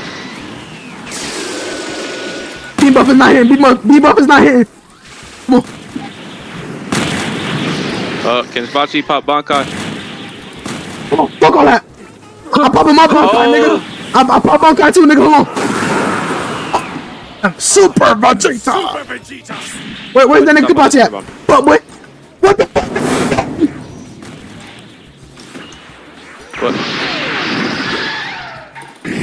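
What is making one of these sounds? Energy blasts burst and roar in loud whooshes.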